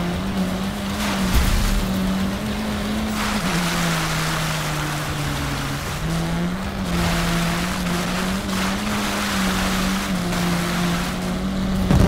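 Water splashes and sprays under a car's tyres.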